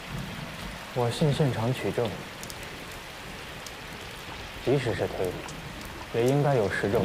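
A young man speaks firmly and calmly, close by.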